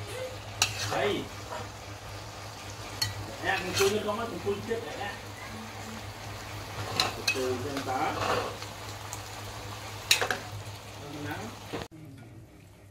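A metal spatula scrapes and clinks against a pan and a plate.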